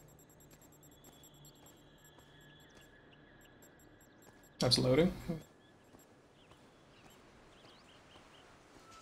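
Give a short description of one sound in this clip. Footsteps walk softly over grass.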